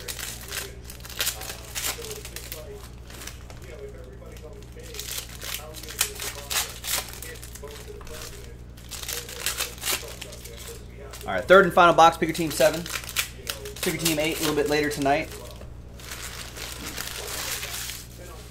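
Foil card packs crinkle and rustle as they are torn open.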